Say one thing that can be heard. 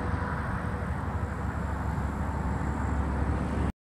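A car drives by on a nearby highway.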